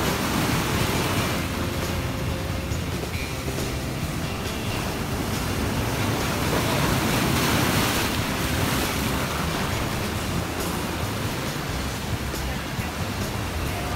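Waves crash and surge against rocks close by.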